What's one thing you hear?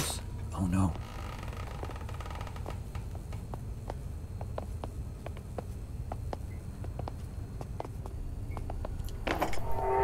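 A young man speaks briefly close to a microphone.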